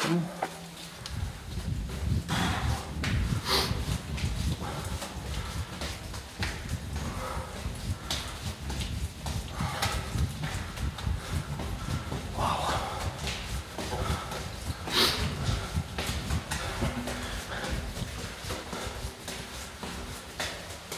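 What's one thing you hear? Footsteps crunch steadily on a gritty floor in a narrow echoing tunnel.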